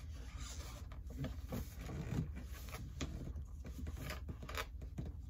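Metal parts clink and rattle as they are fitted together.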